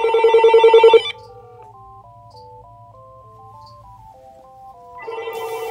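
A telephone plays a simple electronic melody.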